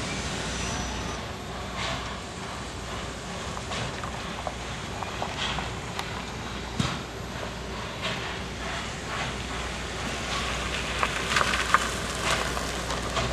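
A steam train rumbles and clanks slowly along the tracks.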